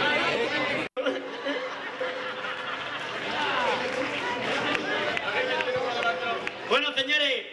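A group of men sings together through loudspeakers.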